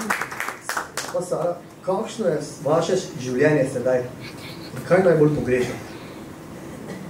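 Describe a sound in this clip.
A young man speaks through a microphone.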